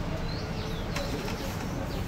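A wire scoop clinks against a metal rack.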